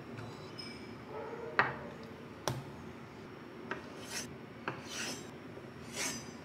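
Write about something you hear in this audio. A knife slices through soft tofu.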